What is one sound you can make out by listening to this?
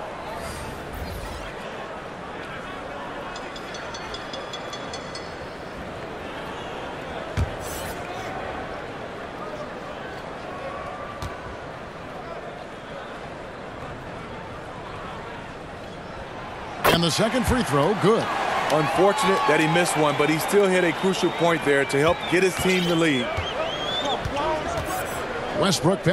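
A large arena crowd murmurs steadily.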